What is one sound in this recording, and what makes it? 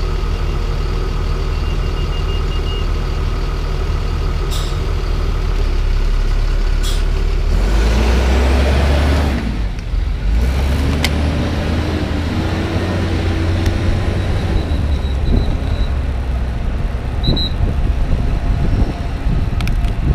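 Wind buffets loudly while cycling outdoors.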